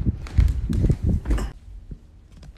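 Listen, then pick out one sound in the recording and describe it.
Bare feet thud on a wooden floor.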